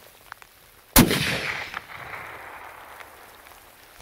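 A rifle shot cracks loudly and echoes across open ground.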